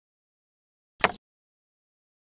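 A small plastic part clicks into place.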